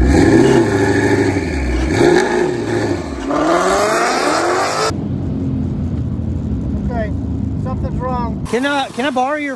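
A car engine revs loudly and roars away.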